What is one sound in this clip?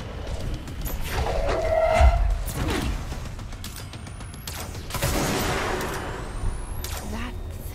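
Gunshots bang out in quick bursts.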